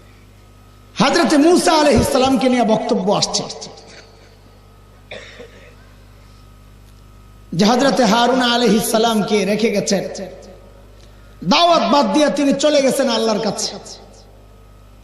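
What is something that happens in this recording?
A middle-aged man preaches loudly and with passion through a microphone and loudspeakers, in bursts with pauses between.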